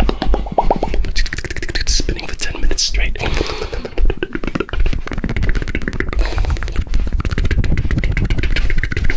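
A young man makes soft mouth clicks and smacks right against a microphone.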